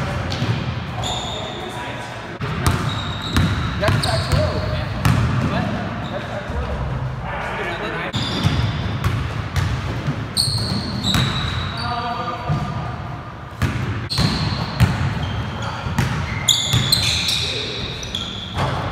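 A basketball bounces on a wooden floor, echoing in a large hall.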